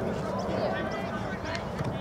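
A foot kicks a soccer ball.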